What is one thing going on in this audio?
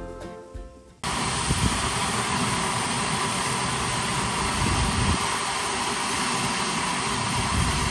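A jet of water gushes and roars steadily.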